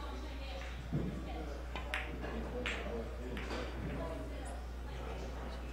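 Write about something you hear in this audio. Billiard balls clack together and roll across the table.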